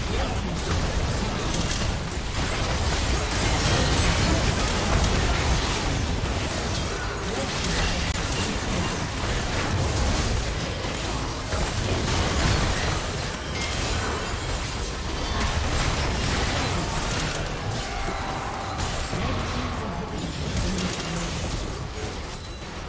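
Game spells and weapon hits crash and whoosh in a busy battle.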